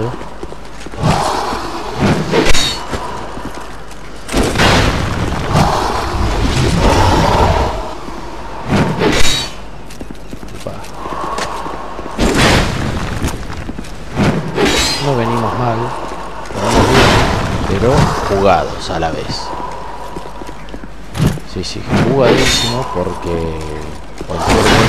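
Swords clash and clang against shields.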